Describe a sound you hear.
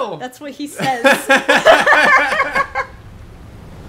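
A young woman shrieks and laughs loudly close to a microphone.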